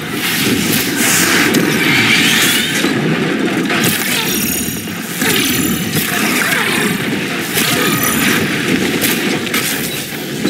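Metal machines clank and explode in bursts of sparks.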